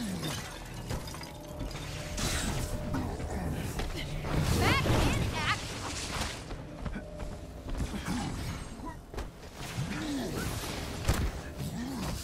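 Heavy footsteps thud on metal.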